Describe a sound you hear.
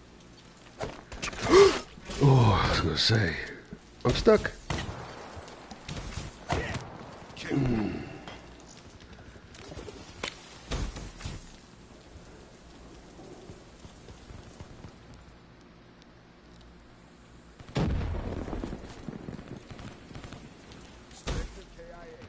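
Gunshots bang in short bursts, now and then.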